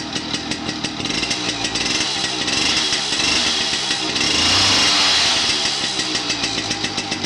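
A small petrol engine revs up loudly and then settles back.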